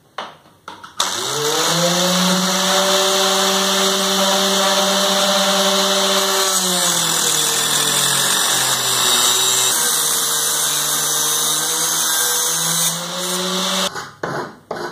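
An angle grinder whirs loudly at high speed.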